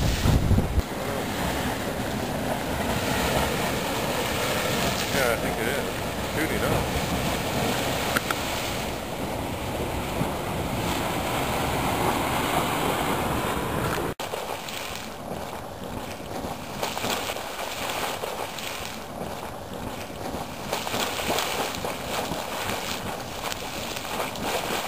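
Wind blows outdoors, buffeting the microphone.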